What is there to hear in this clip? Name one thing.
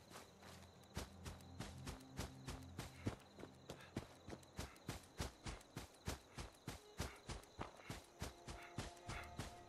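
Footsteps thud quickly and evenly through grass.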